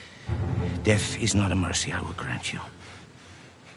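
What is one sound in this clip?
An older man speaks slowly and menacingly, close by.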